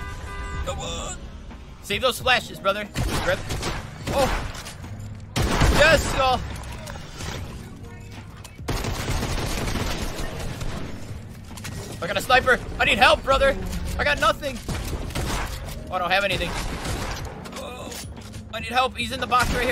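A young man talks with animation into a close headset microphone.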